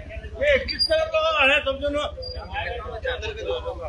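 Several men talk with each other outdoors.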